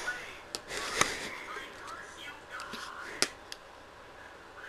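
A large button clicks as it is pressed.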